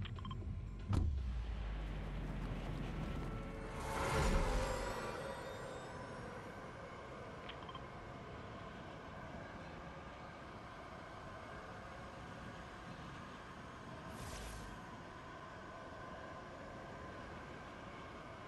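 Wind rushes steadily past a falling figure.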